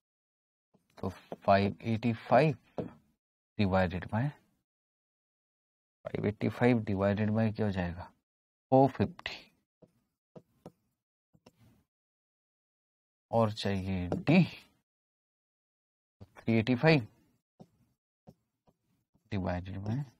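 A man speaks calmly and clearly into a microphone, explaining in short bursts with pauses.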